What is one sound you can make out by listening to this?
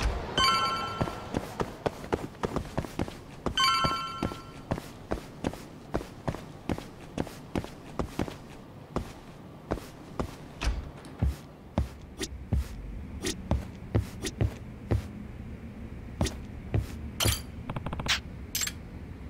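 Footsteps tap quickly on hard stairs and floor.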